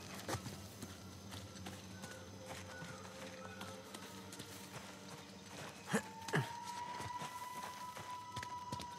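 Footsteps crunch over leaves and undergrowth.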